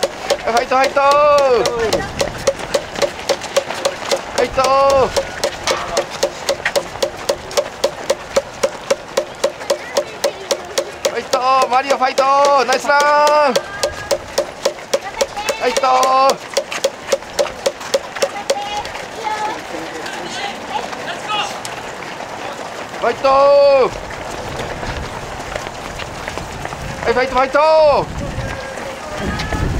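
Many runners' footsteps patter on the road.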